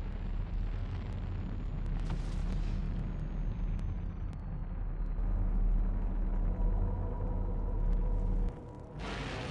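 A dropship's engines rumble low and steady as it flies overhead.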